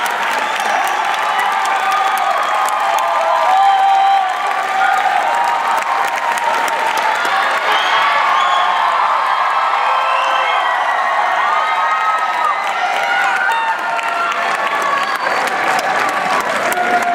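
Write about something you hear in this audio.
A crowd of young people cheers and shouts loudly in a large echoing hall.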